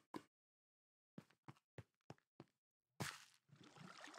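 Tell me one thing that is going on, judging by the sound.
Lava pops and bubbles.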